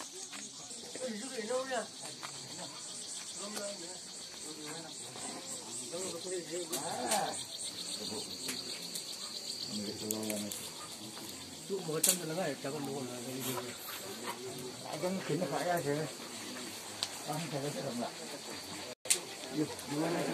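Men talk casually close by, outdoors.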